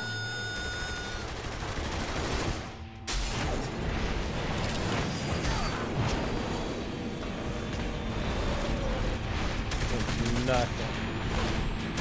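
A gun fires a few sharp shots.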